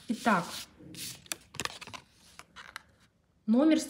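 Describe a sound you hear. A sheet of paper stickers rustles as it is handled.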